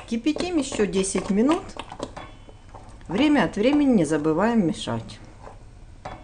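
A wooden spoon stirs and scrapes thick puree in a metal pot.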